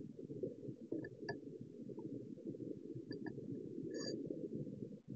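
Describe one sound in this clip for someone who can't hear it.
A handheld meter beeps briefly.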